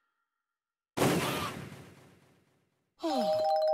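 A soft puff bursts with a whooshing hiss.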